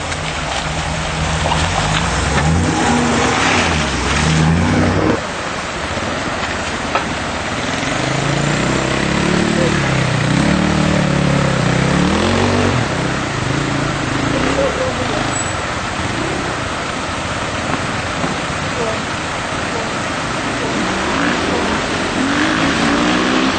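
An off-road vehicle's engine growls and revs as it climbs.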